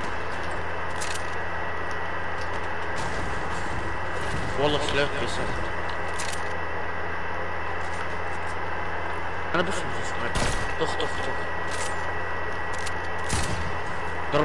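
Gunshots crack sharply now and then in a video game.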